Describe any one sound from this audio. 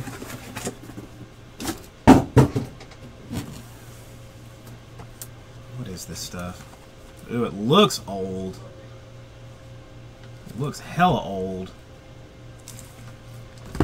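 Cardboard boxes knock and slide against each other.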